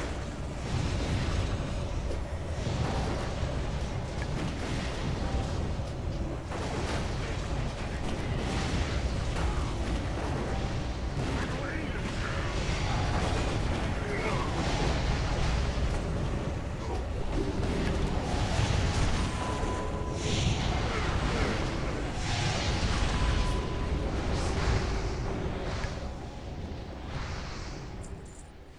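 Magic spells crackle and burst in a fierce battle.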